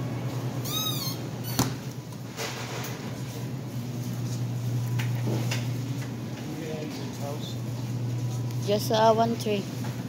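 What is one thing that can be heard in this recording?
Refrigerators hum steadily.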